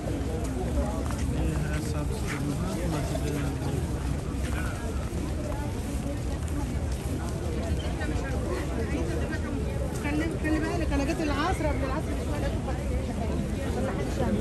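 A large crowd of people murmurs and chatters outdoors.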